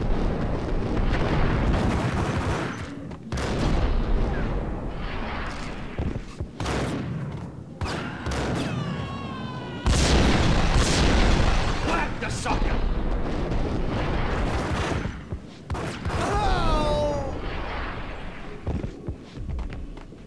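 Pistols fire in loud bursts with echoing bangs.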